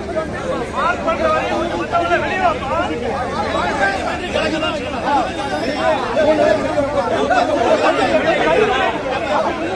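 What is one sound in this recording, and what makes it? A man argues loudly up close.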